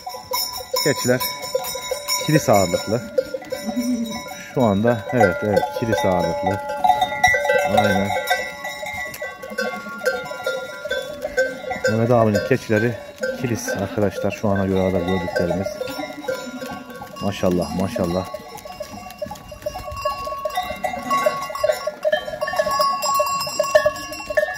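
Goats bleat loudly and often, close by.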